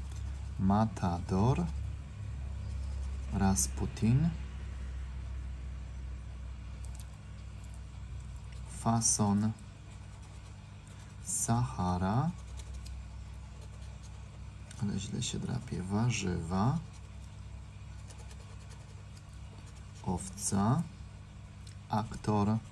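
A soft tool brushes and scratches across a card.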